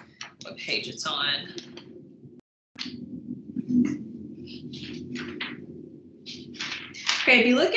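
A woman speaks calmly into a microphone, as if lecturing.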